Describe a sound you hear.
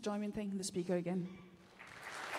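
A man speaks briefly through a microphone in a large hall.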